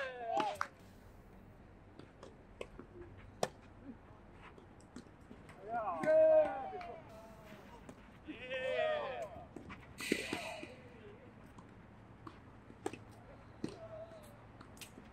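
Tennis rackets strike a ball in a quick rally.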